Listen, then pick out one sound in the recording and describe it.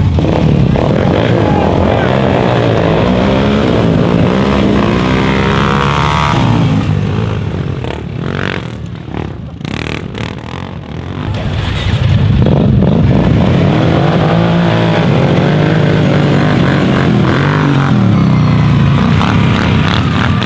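Several ATV engines rev hard as the machines pull away from a start.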